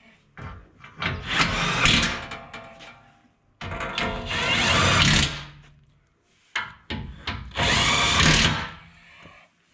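An impact wrench whirs in loud bursts.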